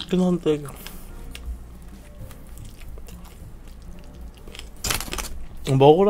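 A young man chews food loudly close to a microphone.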